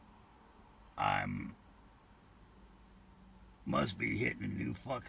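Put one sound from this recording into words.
An elderly man speaks briefly close by, in short bursts.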